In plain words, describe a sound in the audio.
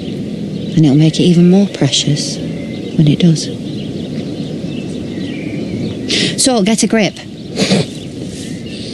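A woman speaks calmly and earnestly, close by.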